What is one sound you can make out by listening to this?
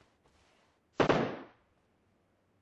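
A single loud gunshot bangs.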